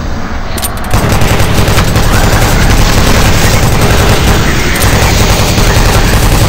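A heavy gun fires rapid booming shots.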